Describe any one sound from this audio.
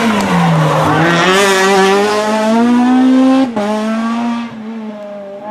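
A rally car engine revs hard, rising in pitch, then fades as the car drives off.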